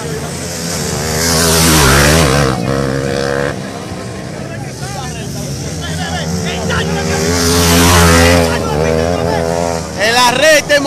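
Motorcycle engines roar as dirt bikes race past, rising and fading.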